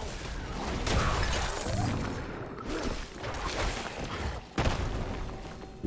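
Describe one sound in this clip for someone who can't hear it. Magic blasts burst with a roaring whoosh.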